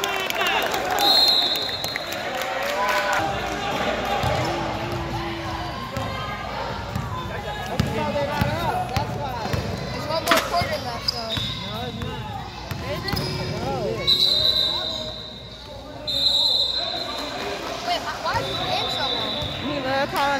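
Young players shout and call out across an echoing gym.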